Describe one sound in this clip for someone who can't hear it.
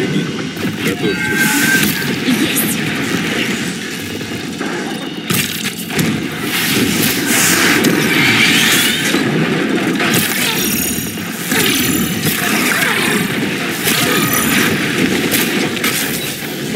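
Arrows whoosh and strike with sharp electric crackles.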